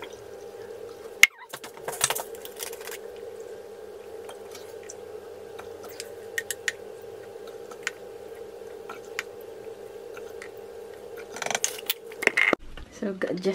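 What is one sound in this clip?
A plastic bottle clicks and rattles as it is handled.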